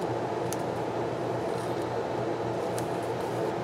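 Hands rub and press softly on paper.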